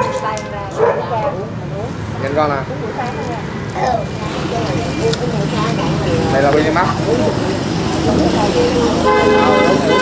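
Several adults talk over one another close by, in a lively crowd.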